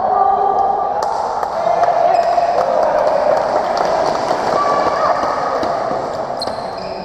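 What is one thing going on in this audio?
Badminton rackets strike a shuttlecock in a large echoing hall.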